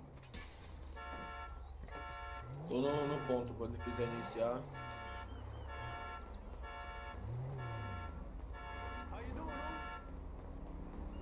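A car alarm beeps rapidly and repeatedly.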